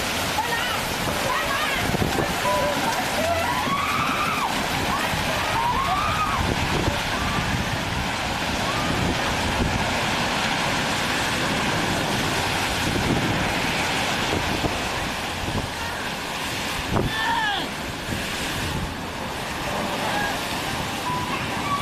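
Waves crash and wash over rocks nearby.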